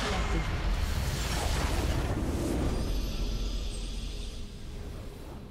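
A video game structure explodes with a deep rumbling blast.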